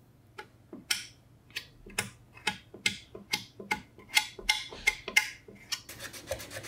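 A scraper blade scrapes in short, quick strokes.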